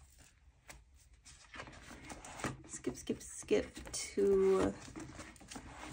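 Binder pages flip over with a soft plastic rustle.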